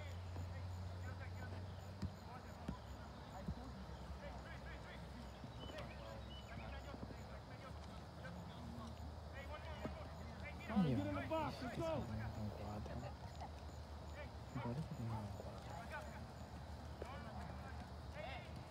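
Adults call out and talk outdoors in an open field.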